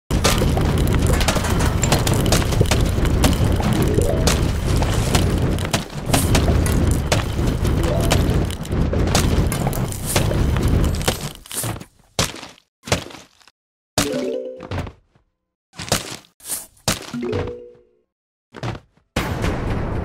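Game plants pop and thud rapidly as they fire at zombies.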